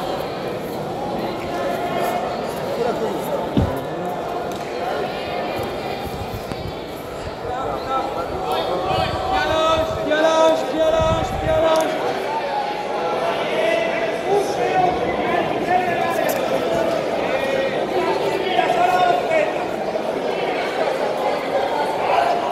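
A crowd of men and women chatters and shouts in a large echoing hall.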